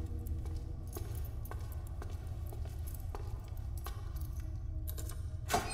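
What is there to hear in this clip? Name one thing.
Footsteps echo slowly down a long hallway.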